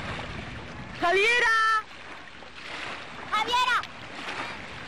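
Young women shriek loudly outdoors.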